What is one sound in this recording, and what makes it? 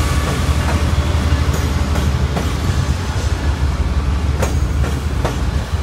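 Train wheels clack over rail joints.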